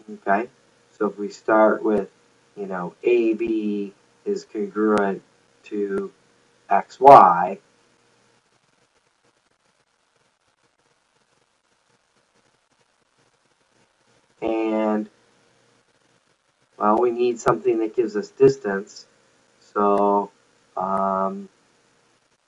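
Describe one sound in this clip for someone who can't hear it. A middle-aged man explains calmly through a close microphone, with long pauses.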